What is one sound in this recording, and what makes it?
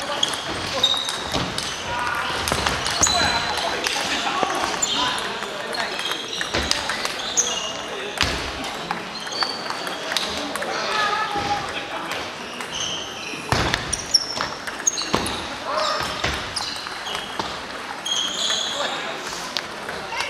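Shoes squeak on the floor.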